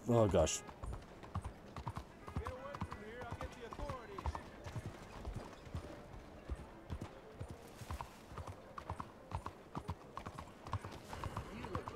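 Horse hooves clop steadily on cobblestones.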